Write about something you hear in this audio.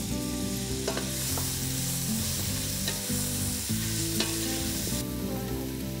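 Food sizzles in a hot pan as a wooden spatula stirs it.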